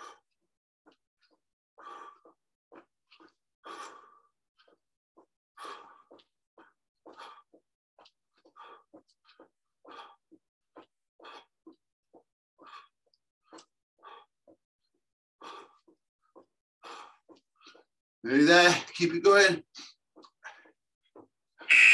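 A man breathes out hard in short, regular puffs while exercising.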